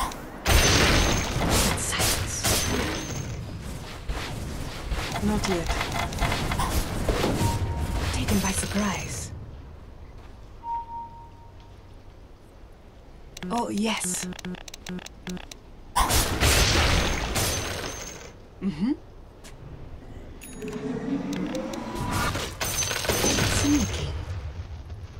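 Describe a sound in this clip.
Game spells blast and crackle in bursts during a fight.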